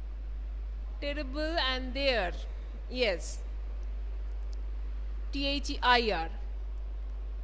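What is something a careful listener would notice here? A woman speaks into a microphone close by.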